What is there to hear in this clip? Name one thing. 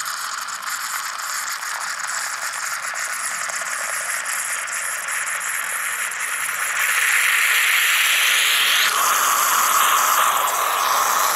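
A moka pot hisses and gurgles as coffee bubbles up, growing louder.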